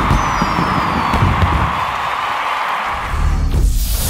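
Fireworks crackle and bang overhead.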